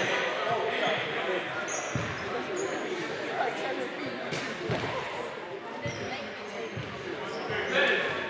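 A crowd of players and spectators chatters in a large echoing gym.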